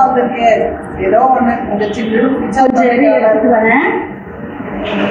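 A woman speaks loudly and with animation through a microphone.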